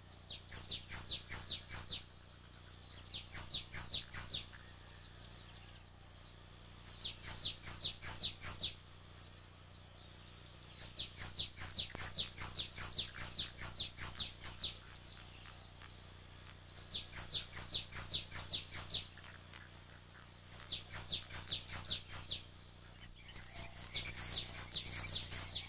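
A small bird chirps in rapid bursts.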